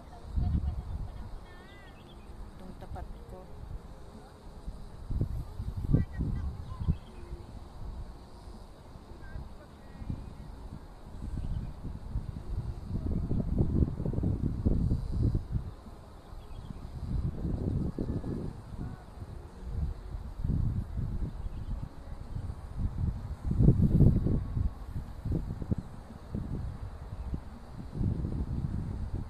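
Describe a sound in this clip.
Wind gusts and rumbles across a hilltop outdoors.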